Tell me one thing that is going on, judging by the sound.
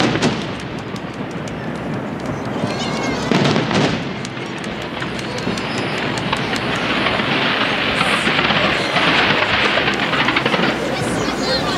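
Fireworks boom and bang outdoors.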